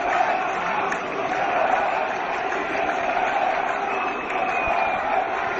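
A huge outdoor crowd chants in unison.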